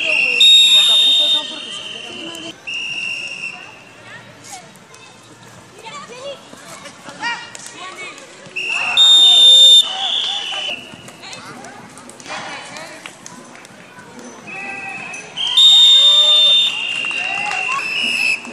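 A referee's whistle blows loud, long blasts outdoors.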